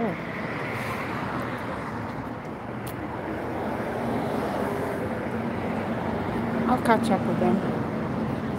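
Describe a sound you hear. Footsteps tap on brick pavement.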